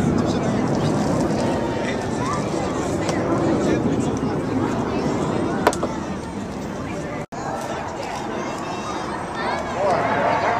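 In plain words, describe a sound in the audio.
Jet planes roar far overhead.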